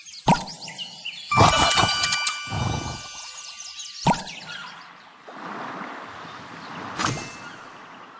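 Sharp interface clicks sound a few times.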